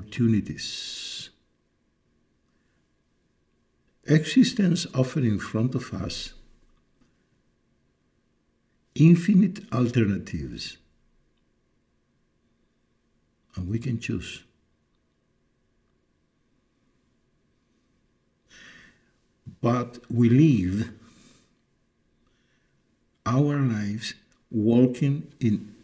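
An elderly man speaks calmly and thoughtfully, close to a microphone, with long pauses.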